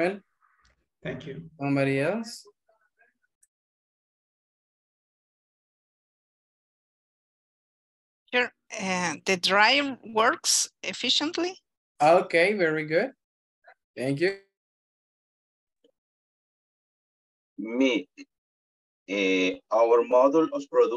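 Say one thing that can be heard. A man speaks calmly over an online call, in bursts with pauses.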